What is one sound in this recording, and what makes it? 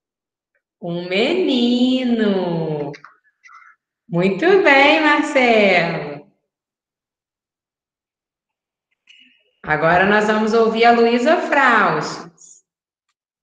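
A woman speaks warmly and with animation, close to the microphone, heard through an online call.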